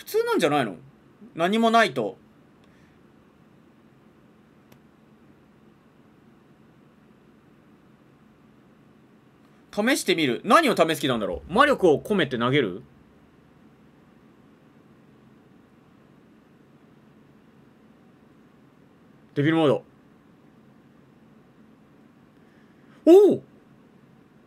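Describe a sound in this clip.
A young man speaks with animation close to a microphone, in short bursts.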